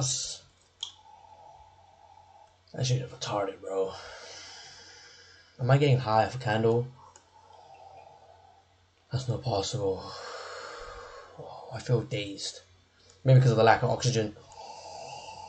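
A young man gulps a drink.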